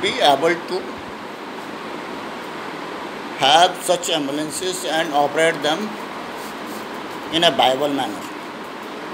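An elderly man speaks calmly and close to the microphone, with pauses.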